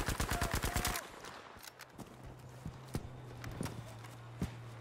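Gunshots crack in the distance.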